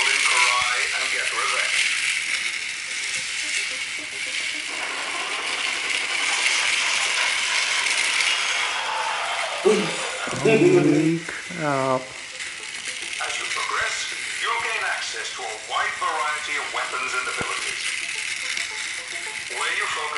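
Small electric toy cars whir steadily as they race around a track.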